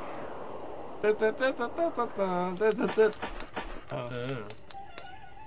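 A young man talks excitedly close to a microphone.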